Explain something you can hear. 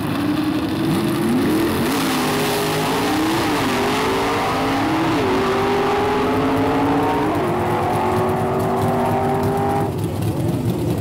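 Race car engines roar loudly, the pitch climbing through the gears.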